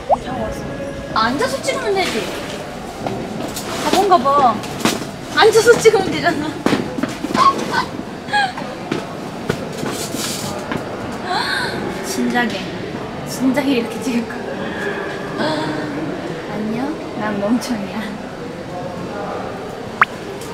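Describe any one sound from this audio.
A young woman talks playfully to herself close by.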